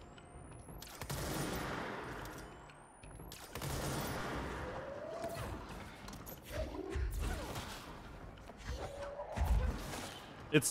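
Loud blasts boom and rumble.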